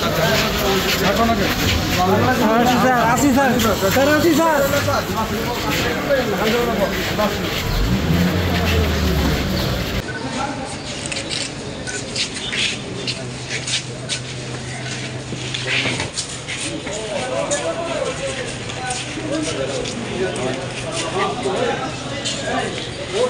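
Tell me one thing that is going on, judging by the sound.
A crowd of men talks and shouts all at once, close by.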